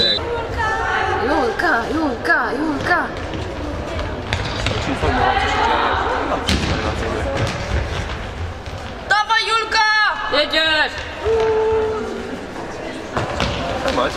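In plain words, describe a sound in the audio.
Players' shoes squeak and thud on an indoor court in a large echoing hall.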